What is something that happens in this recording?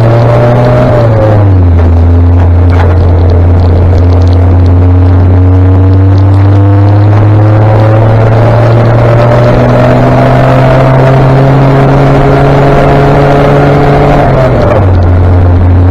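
A motorcycle engine hums steadily up close, dropping in pitch at each gear change.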